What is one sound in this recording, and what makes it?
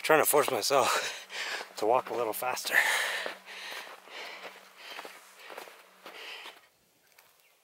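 A man talks with animation close to a microphone, sounding breathless.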